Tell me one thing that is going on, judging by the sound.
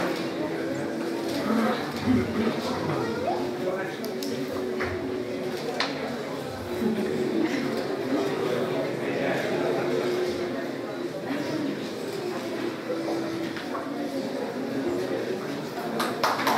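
A man plays a melody on a wind instrument.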